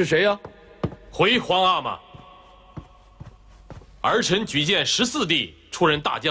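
A man answers formally in a clear voice.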